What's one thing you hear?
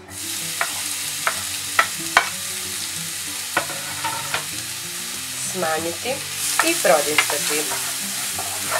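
Onions sizzle steadily in a frying pan.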